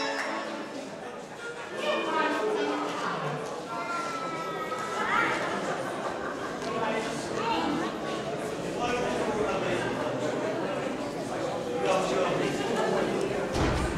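A crowd of people chatter in an echoing hall.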